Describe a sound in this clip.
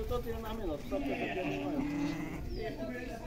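Goats bleat.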